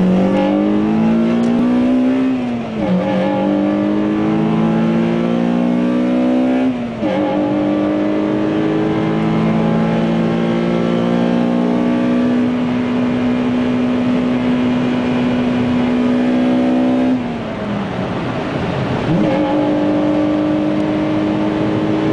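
A car engine revs up through the gears, rising in pitch and dropping at each gear change.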